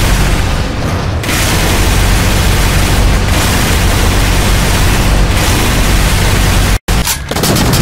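A plasma weapon fires rapid bursts of shots.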